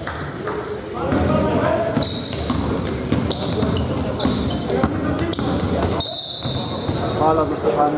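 A basketball bounces on the court.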